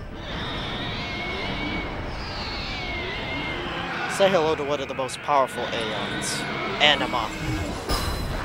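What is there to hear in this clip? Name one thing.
A monster roars loudly.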